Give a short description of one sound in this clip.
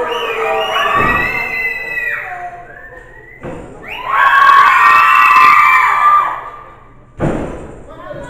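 Wrestlers thud heavily onto a ring floor.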